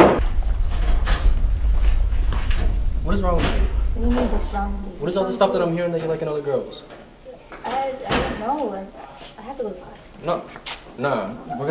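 A young man talks with animation to a young woman.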